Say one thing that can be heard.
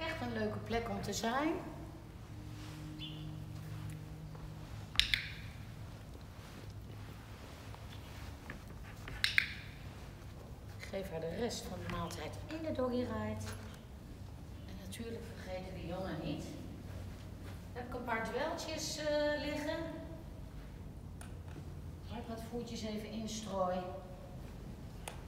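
A woman talks calmly and cheerfully nearby.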